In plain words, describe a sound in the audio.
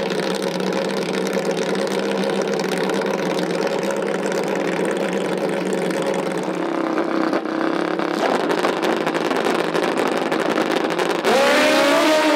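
A motorcycle engine idles and revs loudly close by.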